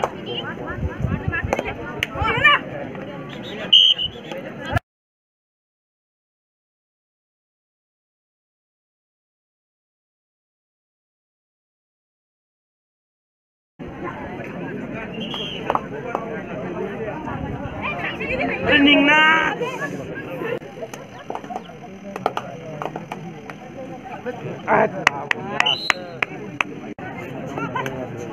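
A crowd chatters and cheers outdoors.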